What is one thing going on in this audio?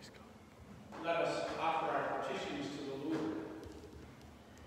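A middle-aged man speaks calmly through a microphone in a large echoing hall.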